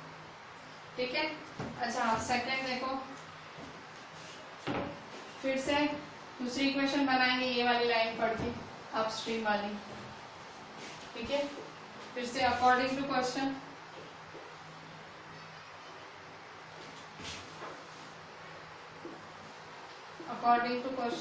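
A woman speaks calmly and clearly, as if explaining.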